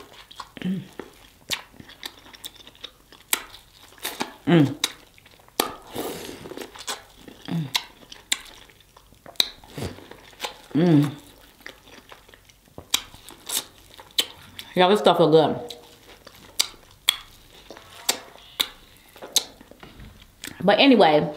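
A young woman chews food loudly and wetly close to a microphone.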